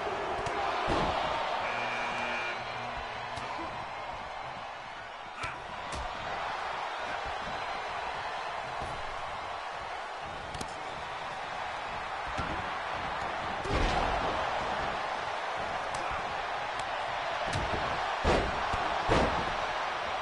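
Heavy bodies thud against a wrestling mat.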